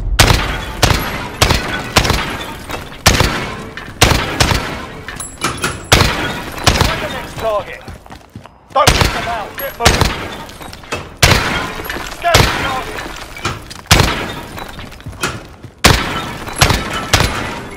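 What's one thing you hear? Rifle shots crack one by one and echo through a large hall.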